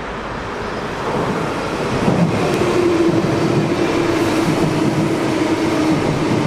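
A train rolls into the station, rumbling and screeching on the rails.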